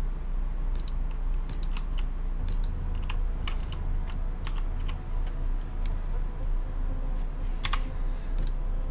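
A welding tool crackles and clicks in short bursts.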